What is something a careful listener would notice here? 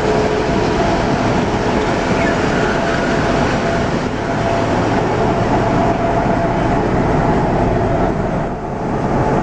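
A diesel locomotive engine rumbles loudly and steadily close by.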